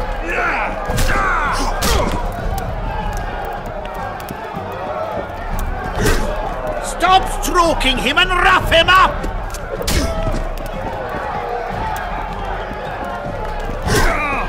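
Fists thud heavily in a brawl.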